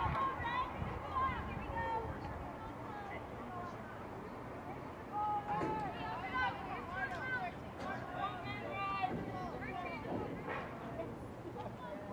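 Young women shout and call out to each other outdoors on an open field.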